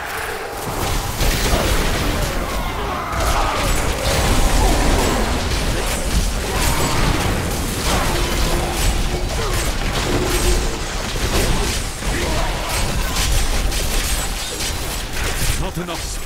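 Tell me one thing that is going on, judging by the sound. Blows strike monsters with heavy thuds.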